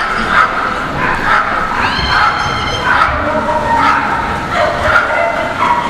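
A woman calls out commands to a dog in a large echoing hall.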